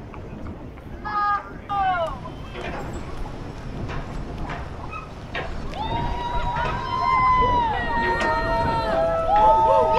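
A large ship's horn blasts loudly nearby.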